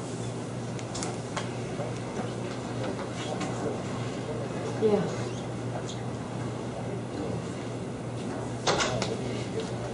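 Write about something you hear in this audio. Papers rustle and shuffle on a table.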